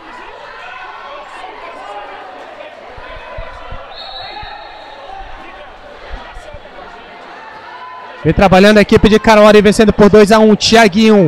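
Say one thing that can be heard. A crowd of spectators murmurs and chatters in an echoing indoor hall.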